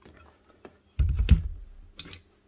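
A heavy power tool thuds down onto a hard surface.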